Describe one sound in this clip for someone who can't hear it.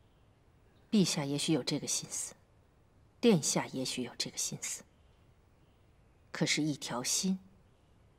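A woman speaks calmly in reply.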